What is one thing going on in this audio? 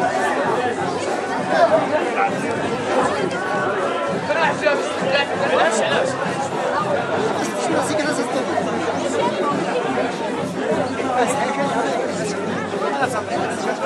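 A crowd of men and women chatters loudly outdoors.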